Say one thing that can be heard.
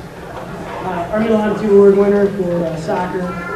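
A young man speaks calmly into a microphone over loudspeakers.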